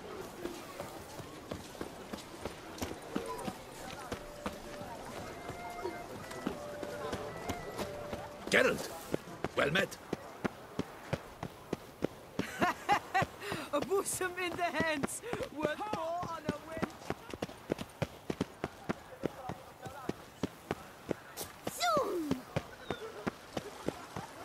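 Footsteps run quickly over stone paving.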